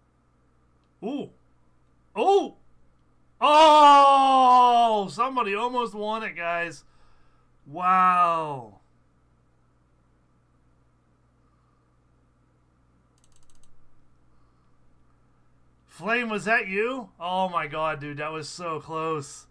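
A man talks with animation into a close microphone, exclaiming loudly at times.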